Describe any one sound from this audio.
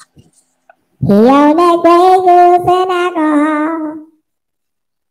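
A man sings a long, loud note into a microphone.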